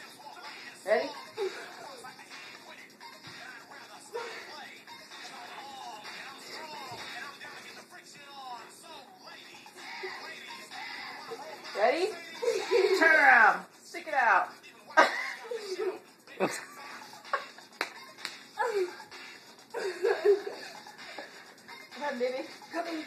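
A young boy sings and shouts excitedly nearby.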